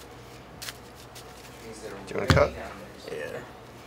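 A deck of cards is set down on a table with a soft tap.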